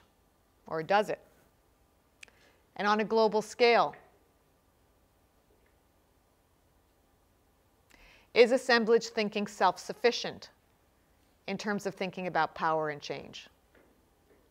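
An older woman speaks calmly in short bursts with pauses.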